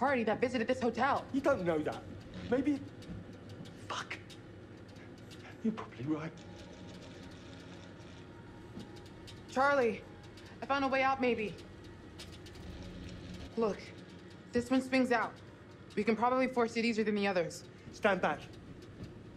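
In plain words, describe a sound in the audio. A young woman speaks in a tense, low voice.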